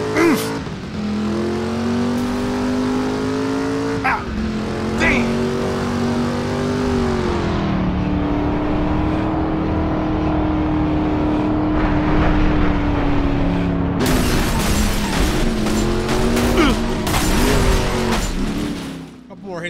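A car engine roars steadily, its pitch rising and falling with gear shifts.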